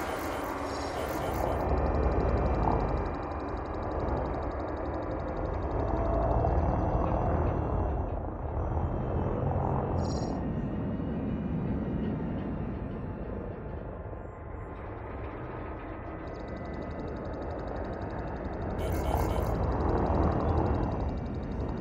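A spaceship engine rumbles low and steadily, swelling and easing at times.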